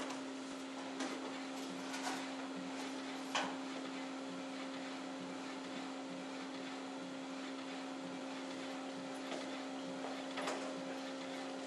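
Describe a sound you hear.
A printer clicks and clacks now and then.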